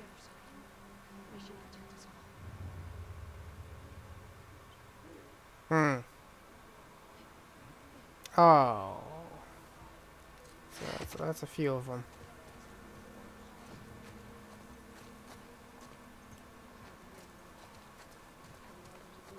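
Tall grass rustles as a person crawls through it.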